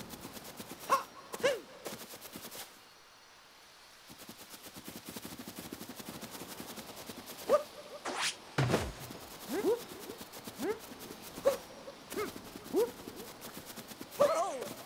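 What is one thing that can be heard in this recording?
A character jumps with a short springy sound effect.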